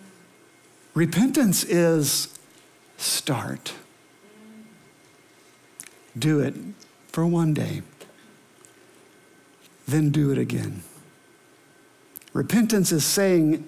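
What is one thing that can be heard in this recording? A middle-aged man speaks calmly through a microphone, pausing between phrases.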